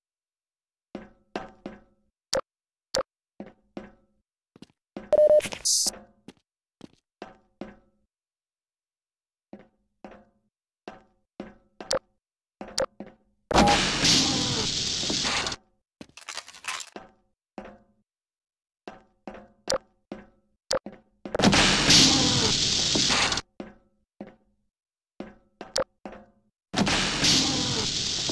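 Footsteps clank steadily on a metal floor.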